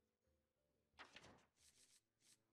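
A page of game cards flips over with a quick swish.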